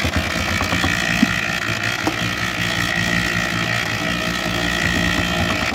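Soil pours from a bucket into a cement mixer.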